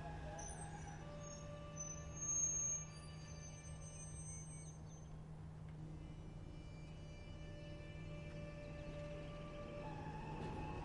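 A train's wheels squeal on a curve.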